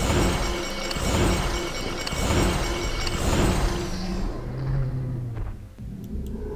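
A large creature roars and rumbles loudly.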